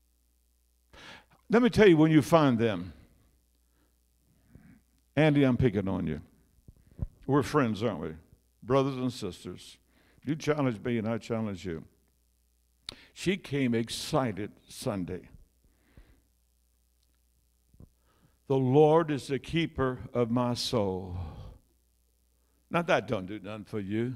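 An elderly man speaks with animation through a microphone, heard over loudspeakers in an echoing hall.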